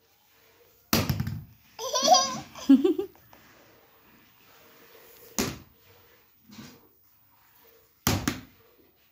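A broom handle knocks against a hard floor.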